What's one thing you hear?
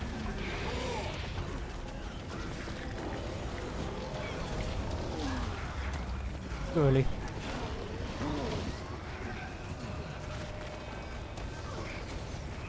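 Game spell effects crackle and blast.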